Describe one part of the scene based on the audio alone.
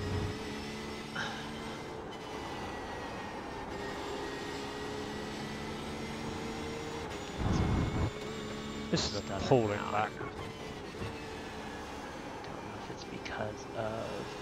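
A racing car engine hums steadily, rising and falling in pitch with gear changes.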